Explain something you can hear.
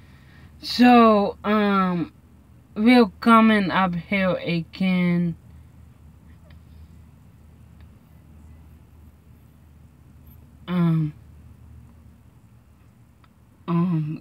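A young woman speaks close by, in a drawn-out, animated way.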